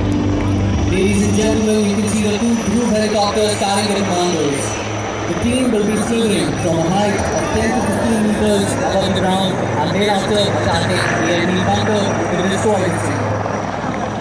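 A crowd of people nearby shouts and chants excitedly.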